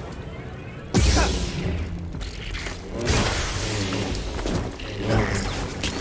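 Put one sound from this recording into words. An energy blade hums and buzzes.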